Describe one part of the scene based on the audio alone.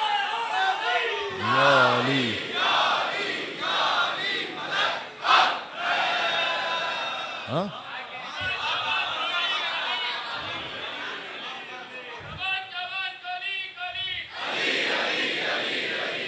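A man speaks with feeling into a microphone in an echoing hall.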